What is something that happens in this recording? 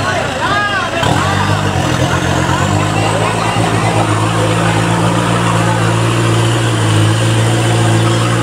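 An engine revs hard and drones steadily.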